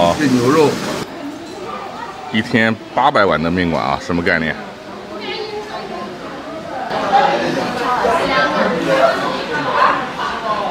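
A crowd of men and women chat at tables.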